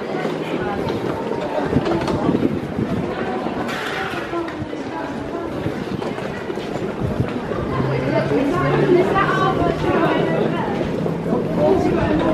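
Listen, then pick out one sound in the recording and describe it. Footsteps patter on a tiled floor.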